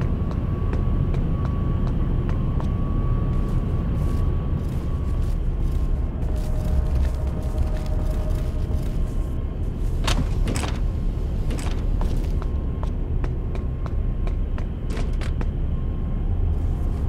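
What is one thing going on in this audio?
Footsteps thud steadily on a hard floor and stairs.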